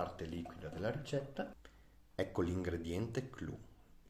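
Liquid trickles into a plastic cylinder.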